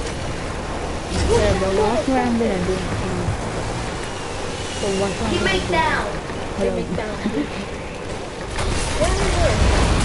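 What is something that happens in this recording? A quad bike engine rumbles as it drives over grass.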